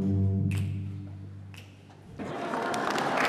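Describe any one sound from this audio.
Music plays and fades out.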